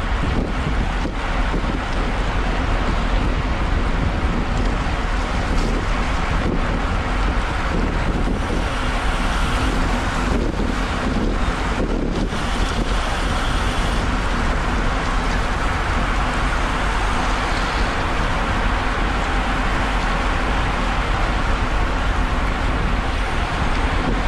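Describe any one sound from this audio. Bicycle tyres hiss on a wet road.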